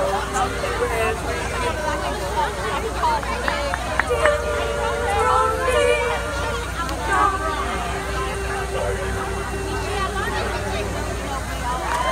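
A group of young singers sings together through loudspeakers outdoors.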